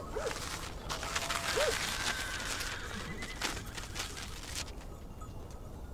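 Paper rustles as it is unfolded.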